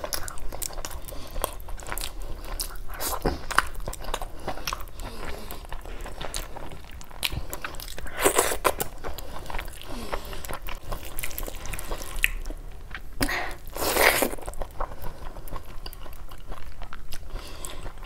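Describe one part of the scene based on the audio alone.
Fingers squelch and mix wet rice and curry close by.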